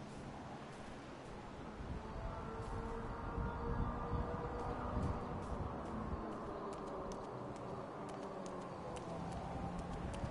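Footsteps run across grass and pavement.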